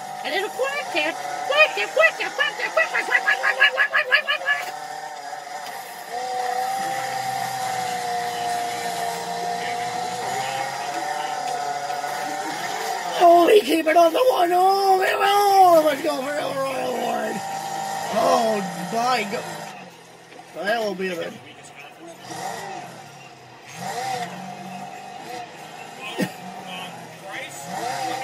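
A racing car engine roars and whines through a small speaker, rising and falling in pitch.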